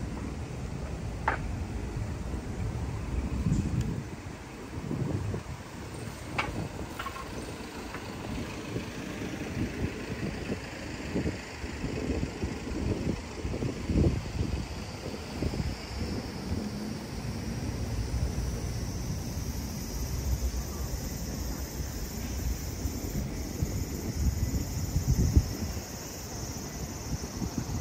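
Light wind blows outdoors.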